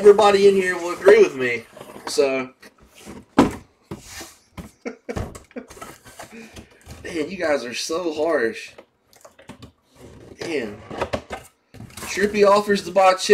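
Cardboard rustles and scrapes as a box is opened.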